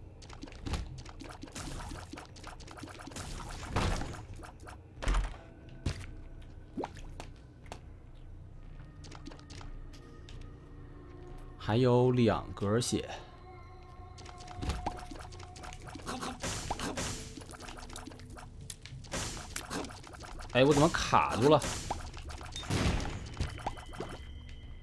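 Video game shots and splats pop and squelch in quick bursts.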